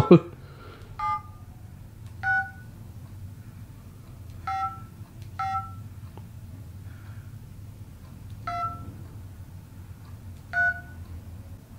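A phone's keypad beeps as numbers are dialled.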